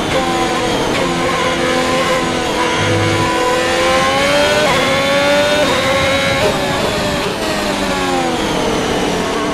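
A racing car engine roars and whines as it shifts up and down through the gears.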